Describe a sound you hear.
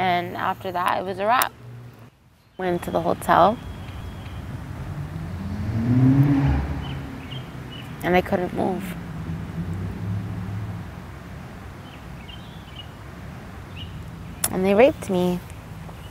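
A young woman speaks calmly and quietly into a close microphone, in short pauses.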